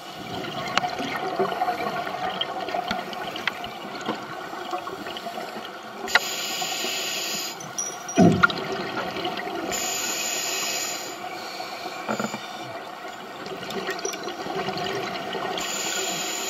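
Soft clicks and crackles sound through the water all around.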